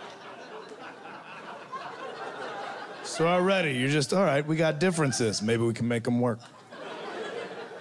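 An audience laughs and murmurs.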